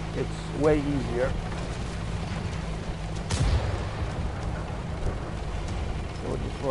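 A tank engine rumbles steadily at low pitch.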